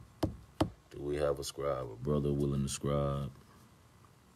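A man speaks calmly and close to a phone microphone.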